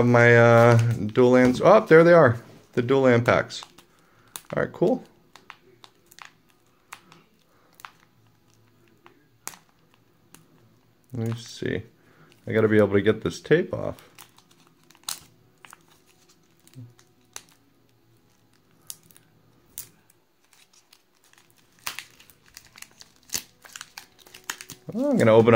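Plastic card sleeves rustle and click softly as cards are slid into them.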